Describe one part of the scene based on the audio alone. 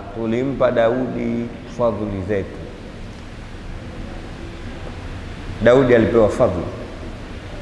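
A man speaks with animation through a microphone, heard over a loudspeaker in a room with some echo.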